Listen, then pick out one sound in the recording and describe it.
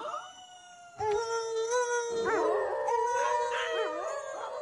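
Wolves howl loudly, their long howls overlapping.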